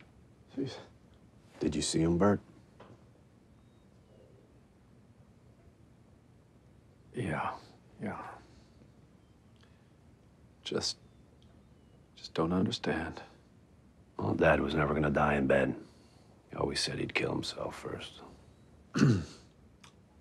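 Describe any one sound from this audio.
A middle-aged man speaks quietly and tersely, close by.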